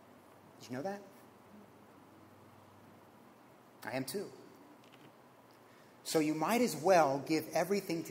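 A man speaks calmly through a microphone, pausing between phrases.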